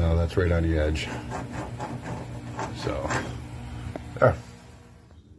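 A pencil scratches on wood.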